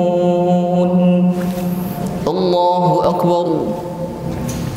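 A young man chants melodically into a close microphone in a reverberant room.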